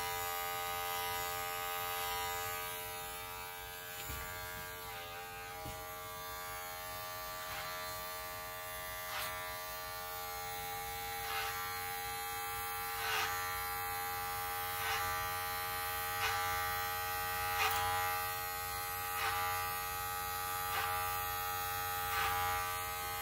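Scissors snip through hair in quick, crisp cuts.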